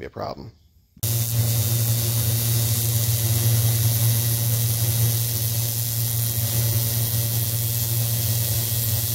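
An arc welder crackles and hums steadily.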